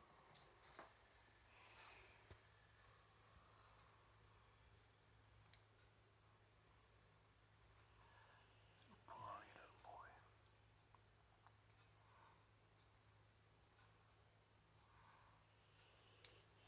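A dog snores softly close by.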